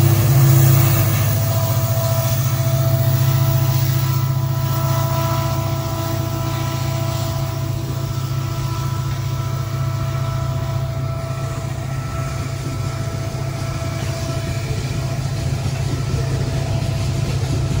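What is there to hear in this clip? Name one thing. Freight wagons rumble and clatter over the rails.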